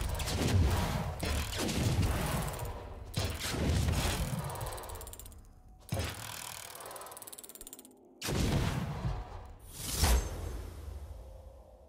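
Deep magical booms and shimmering chimes ring out again and again as a treasure chest transforms.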